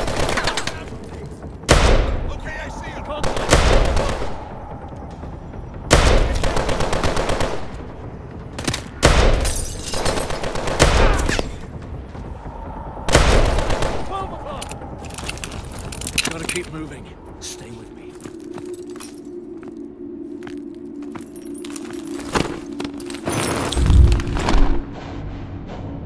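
Heavy gunfire and blasts boom in short bursts.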